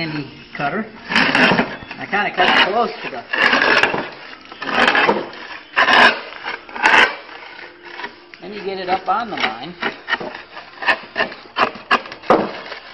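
A metal shear cuts through sheet metal with crunching snips.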